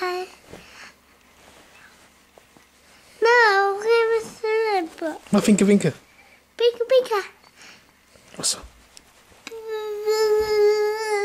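A young child sings in a high, wavering voice close by.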